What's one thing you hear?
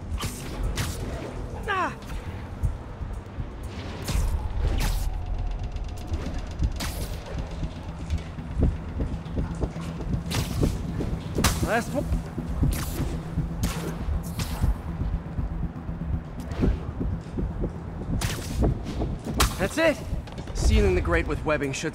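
Webs shoot out with sharp thwips again and again.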